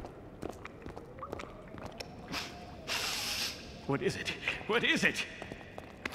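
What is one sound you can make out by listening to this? A man gasps in surprise.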